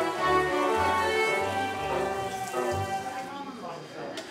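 A small group of musicians plays a lively tune.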